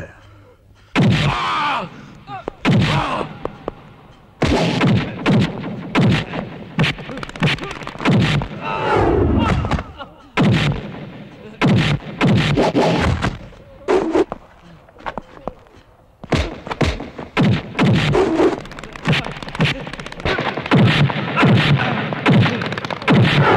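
A man grunts and shouts while fighting.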